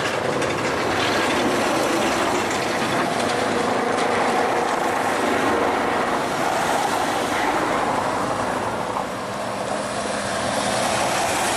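A tram rolls along its rails with a steady rumble.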